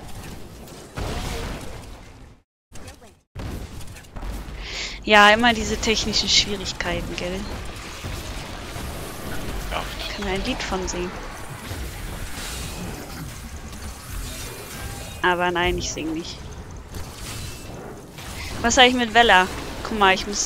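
Magic blasts and explosions crackle and boom in a video game.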